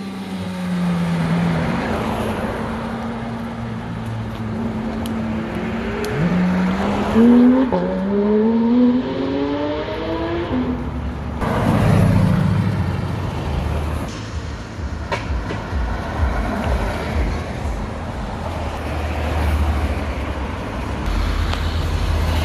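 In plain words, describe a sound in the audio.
Car engines rumble as traffic passes close by.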